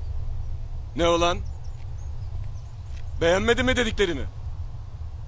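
A man speaks sharply in short bursts, close by.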